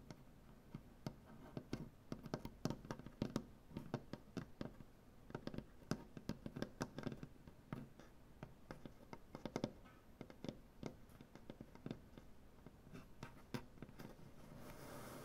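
Fingernails tap quickly and unevenly on a wooden surface.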